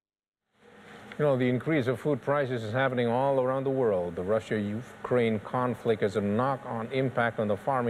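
A middle-aged man speaks calmly and clearly into a microphone, reading out.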